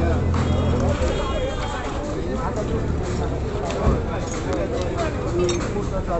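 Metal parts clink and clatter as they are sorted by hand.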